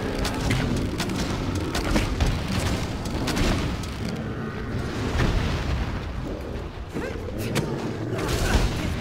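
A beast growls and snarls.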